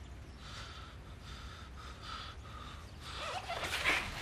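Book pages rustle as they are flipped.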